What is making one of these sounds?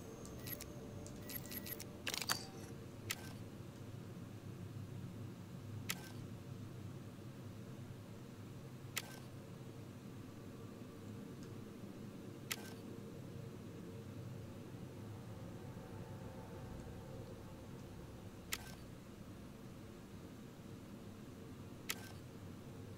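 Short, sharp menu clicks sound now and then.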